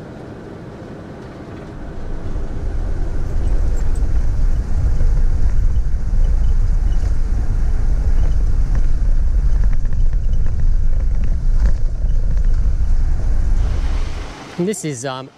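A car engine hums and tyres rumble on the road.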